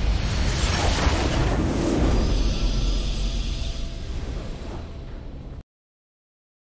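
A game's victory fanfare plays with a deep booming swell and fades away.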